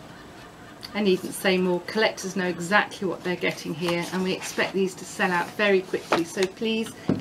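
A woman talks calmly and clearly close by.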